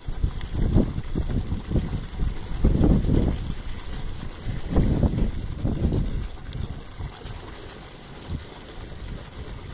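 Wind gusts roughly across the microphone outdoors, then eases off.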